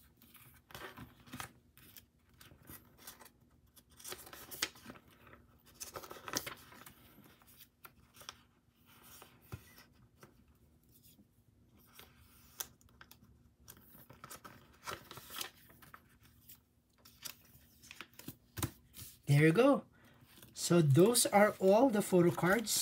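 Plastic sleeves rustle and crinkle as cards are handled.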